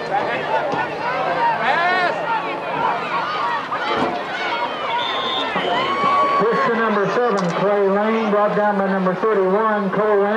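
A crowd cheers and shouts from the stands.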